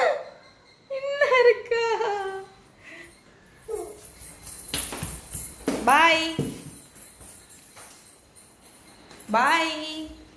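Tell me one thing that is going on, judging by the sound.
A young child squeals and babbles excitedly nearby.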